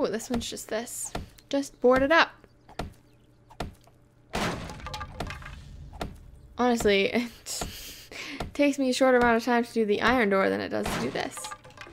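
A hammer knocks against wooden boards.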